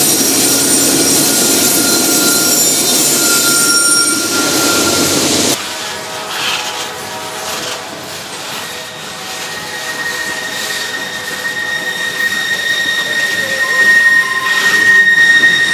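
A long freight train of loaded hopper cars rolls past, its wheels clattering over the rails.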